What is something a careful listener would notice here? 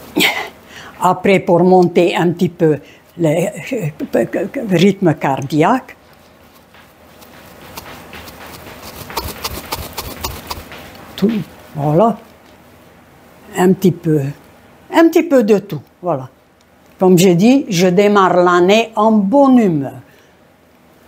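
A woman talks calmly, close by, in short bursts.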